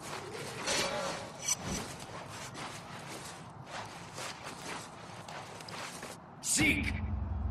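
Hands grab and scrape against a metal wall in quick knocks.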